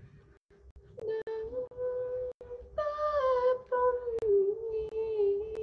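A young woman sings softly close to a phone microphone.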